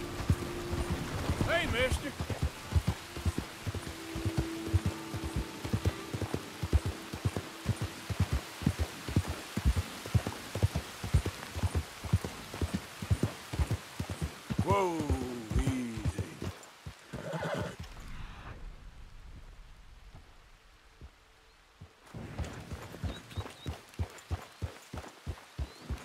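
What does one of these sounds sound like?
A horse's hooves clop steadily on a dirt trail.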